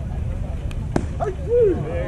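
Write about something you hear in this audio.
A bat cracks against a baseball.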